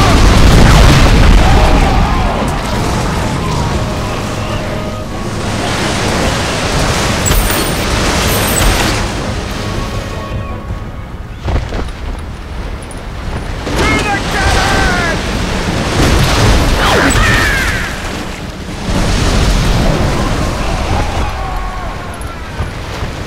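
Cannonballs splash into water.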